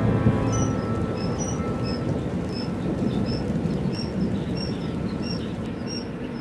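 Small caged birds chirp and tweet repeatedly close by.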